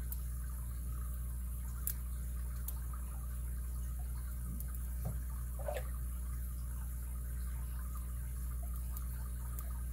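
Metal lock picks scrape and click faintly inside a padlock.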